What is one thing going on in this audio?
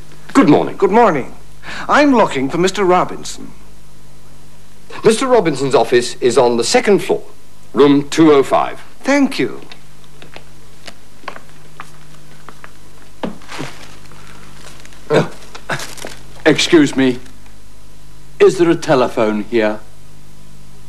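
A middle-aged man speaks with animation nearby.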